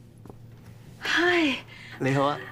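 A young man speaks cheerfully close by.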